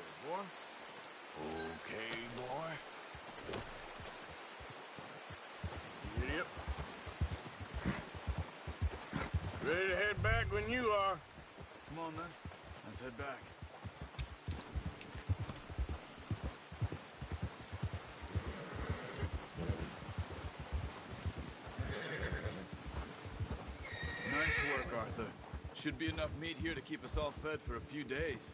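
Horse hooves crunch steadily through snow.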